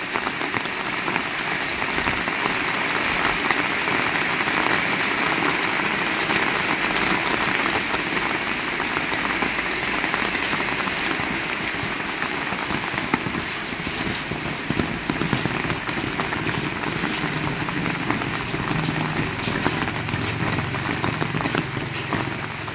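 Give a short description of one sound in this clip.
Rainwater splashes on wet pavement.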